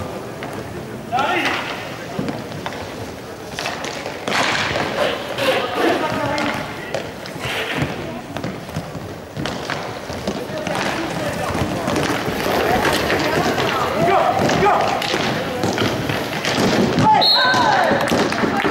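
Skates roll and scrape across a hard floor in a large echoing hall.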